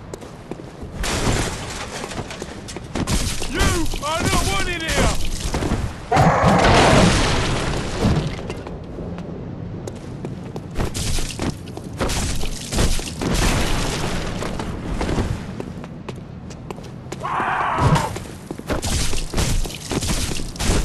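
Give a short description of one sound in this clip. A blade slashes and strikes flesh with wet thuds.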